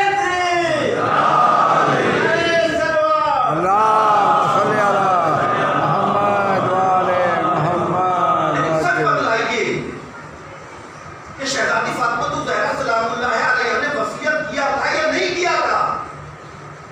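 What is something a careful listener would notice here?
A man chants in a long, melodic voice through a microphone and loudspeaker.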